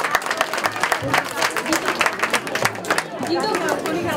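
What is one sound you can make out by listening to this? A crowd claps hands in a quick steady rhythm.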